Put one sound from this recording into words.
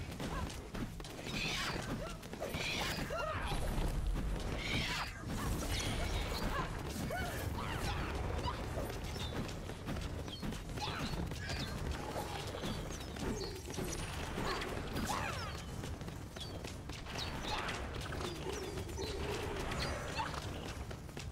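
Electronic game sounds of magic blasts and hits crackle and whoosh.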